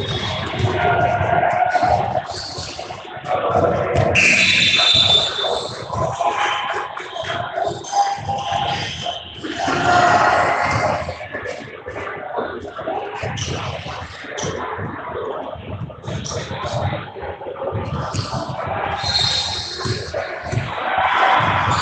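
Spectators cheer and chatter in a large echoing gym.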